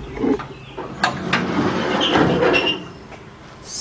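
A metal tray scrapes as it slides out.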